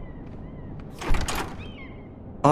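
A heavy knock sounds on a wooden door.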